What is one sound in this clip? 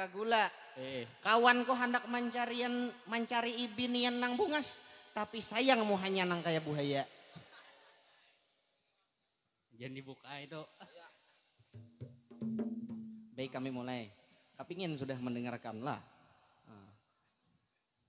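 A young man sings loudly through a microphone.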